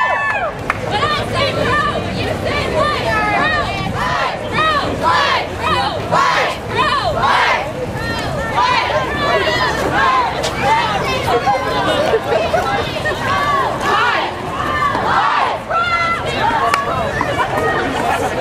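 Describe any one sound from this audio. A large crowd of young people chants and sings loudly outdoors.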